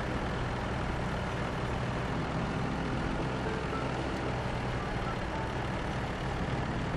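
A truck engine rumbles and strains steadily.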